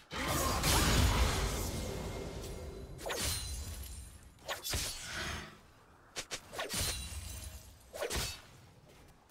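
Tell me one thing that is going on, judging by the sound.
Game spell effects burst and crash during a fight.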